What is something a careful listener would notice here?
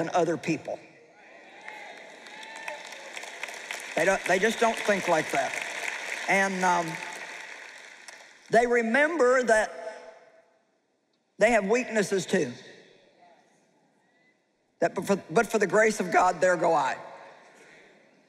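A middle-aged woman speaks calmly into a microphone in a large echoing hall, with pauses.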